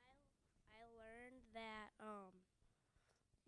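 A young girl speaks into a microphone held out to her, high and sing-song.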